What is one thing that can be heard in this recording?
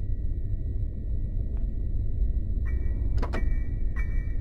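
A car boot clicks open.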